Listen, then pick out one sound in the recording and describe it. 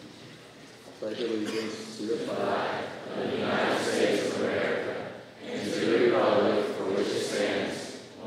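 A young man speaks into a microphone over loudspeakers in a large echoing hall.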